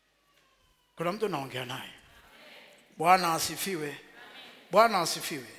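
A man preaches loudly and with animation through a headset microphone, in a large echoing hall.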